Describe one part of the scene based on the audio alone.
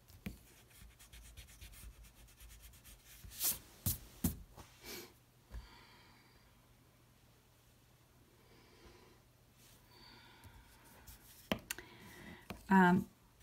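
A pencil taps and scratches on paper close by.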